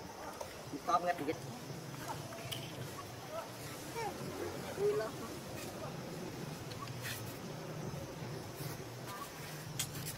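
A baby monkey squeaks softly nearby.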